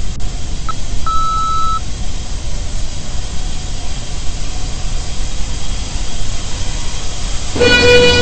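An elevator hums and rumbles steadily as it travels.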